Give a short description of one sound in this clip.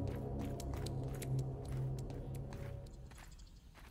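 A tool swings and strikes rock with a thud.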